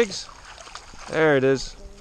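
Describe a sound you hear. Water sloshes as a woman wades through it.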